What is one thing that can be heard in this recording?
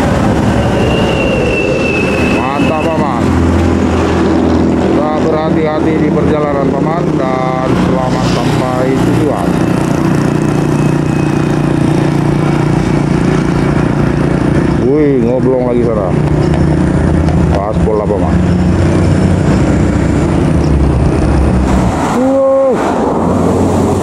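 Large vehicle engines rumble steadily nearby.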